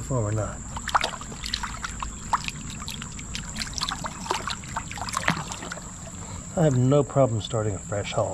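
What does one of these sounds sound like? A hand splashes and swishes through shallow water.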